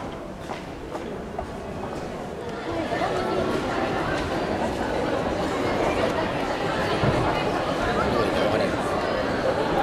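A crowd of young people chatters in a large echoing hall.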